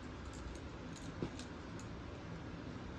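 Fabric rustles as it is unfolded by hand.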